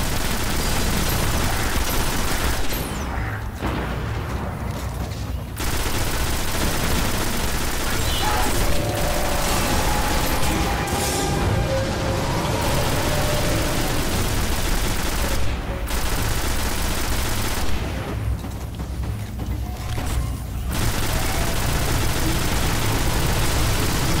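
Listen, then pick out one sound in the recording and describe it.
A rifle fires loud shots in quick bursts.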